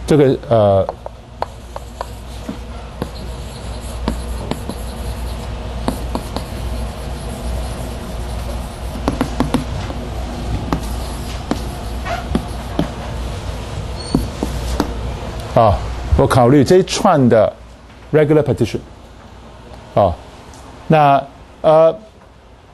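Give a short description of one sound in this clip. A man lectures calmly through a clip-on microphone.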